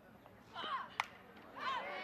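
A bat strikes a softball with a sharp crack.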